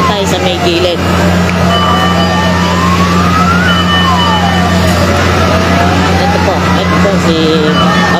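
A siren wails up and down close by.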